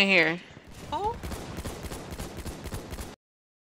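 A rifle fires in rapid shots.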